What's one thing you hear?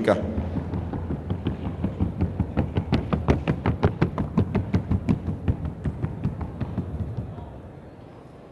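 A horse's hooves drum in a fast, even rhythm.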